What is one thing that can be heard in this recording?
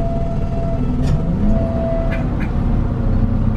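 A diesel city bus pulls away, its engine revving up.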